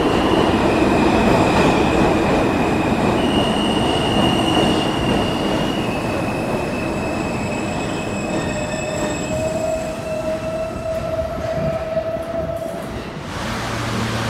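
Subway train brakes squeal as the train slows.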